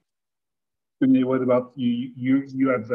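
A man speaks over an online call.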